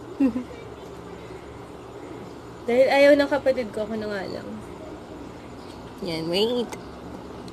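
A young woman talks close by in a lively way.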